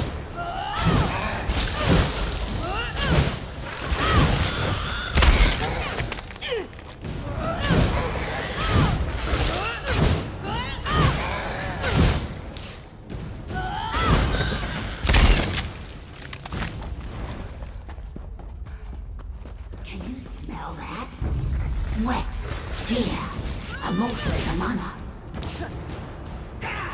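Weapons strike and thud in a fight.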